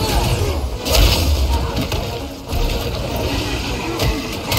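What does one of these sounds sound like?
Blades clash and strike repeatedly.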